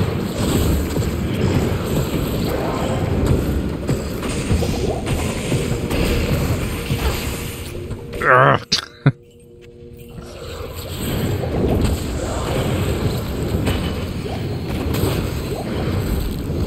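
Spells crackle and blows strike in a fast fantasy battle.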